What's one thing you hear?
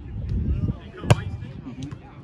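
A volleyball is served with a sharp slap.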